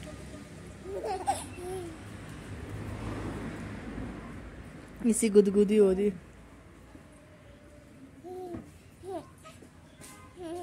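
A baby giggles and babbles close by.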